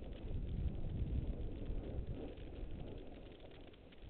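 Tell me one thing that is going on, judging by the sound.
A snowboard scrapes across packed snow.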